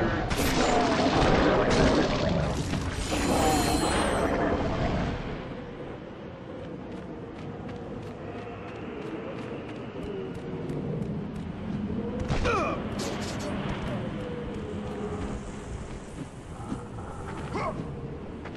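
Wind howls steadily through a sandstorm.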